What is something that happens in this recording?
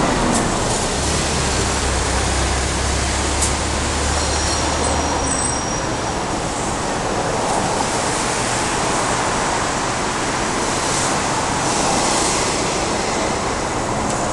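Rain patters steadily outdoors.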